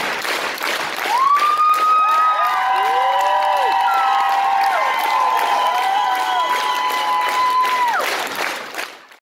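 Fans in a crowd shriek and whistle in high, long cries.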